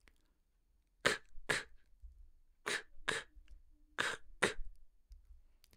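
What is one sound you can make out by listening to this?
A man pronounces short sounds clearly and slowly into a close microphone.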